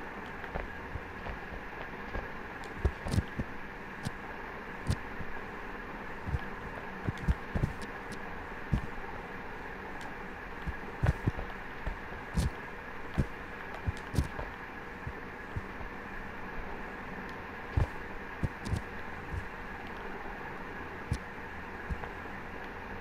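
Wind blows steadily in the background.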